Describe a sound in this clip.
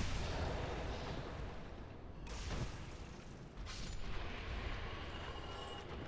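Swords clash and clang in a fight.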